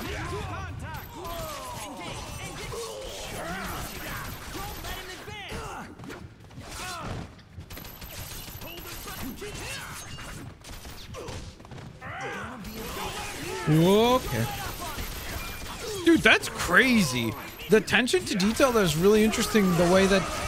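Punches and kicks thud against enemies in quick bursts.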